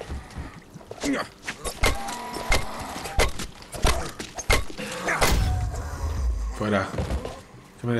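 A zombie growls and snarls close by.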